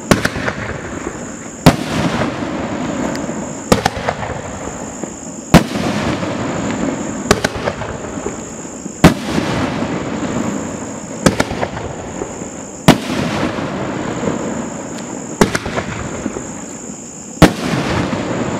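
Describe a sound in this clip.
Fireworks shells burst with loud booms, one after another.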